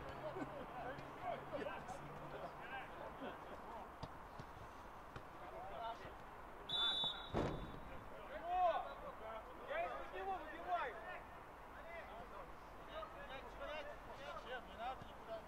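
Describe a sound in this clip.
Men shout and call out across an open outdoor pitch.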